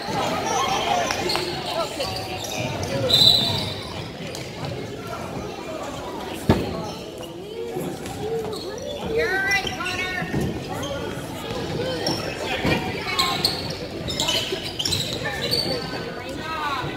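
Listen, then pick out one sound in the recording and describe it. Spectators talk and call out nearby in a large echoing gym.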